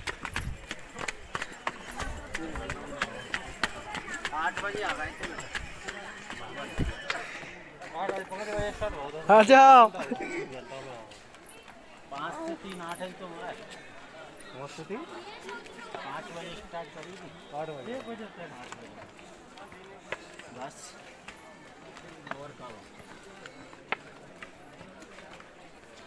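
Several people talk and call out nearby, outdoors.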